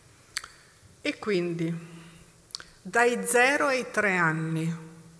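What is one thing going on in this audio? A woman speaks calmly into a microphone in a reverberant hall.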